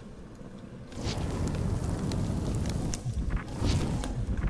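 Flames burst and roar loudly.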